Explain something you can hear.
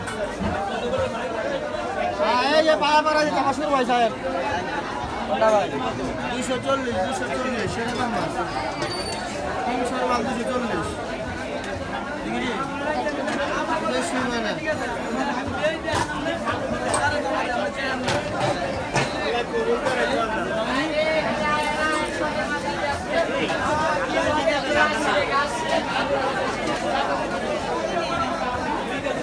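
A crowd of men and women talk all around.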